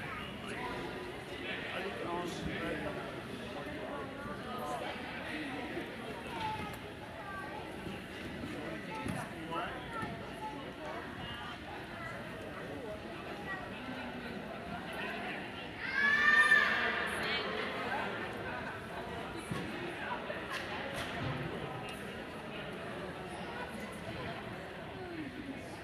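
A crowd of people chatters and murmurs in a large echoing arena.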